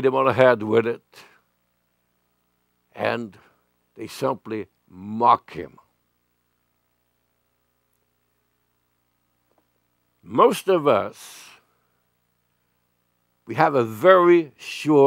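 An elderly man speaks slowly and earnestly into a microphone, with long pauses.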